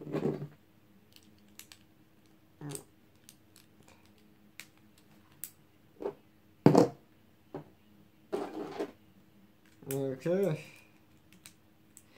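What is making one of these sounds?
Small plastic parts click and clack as they are handled.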